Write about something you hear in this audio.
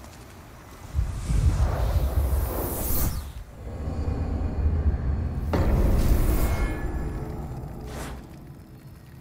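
A deep magical rumble swells with a rushing whoosh.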